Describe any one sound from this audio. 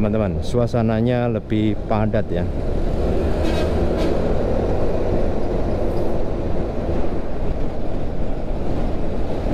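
A heavy truck engine rumbles close by.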